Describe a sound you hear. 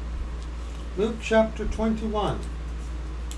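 A middle-aged man speaks briefly and calmly, close to a microphone.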